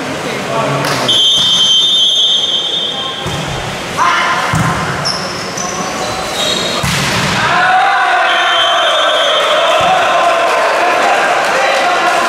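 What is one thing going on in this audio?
Young men shout and cheer in a large echoing hall.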